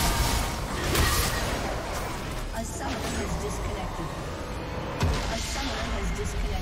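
Game spell effects burst and crackle during a fight.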